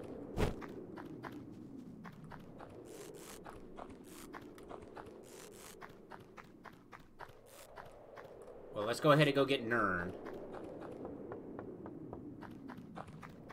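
Light footsteps tap quickly and steadily.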